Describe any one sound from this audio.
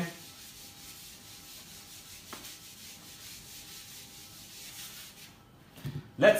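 A whiteboard eraser rubs across a board.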